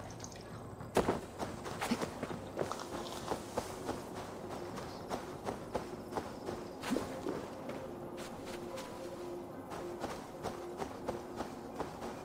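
Footsteps run over grass in quick, regular steps.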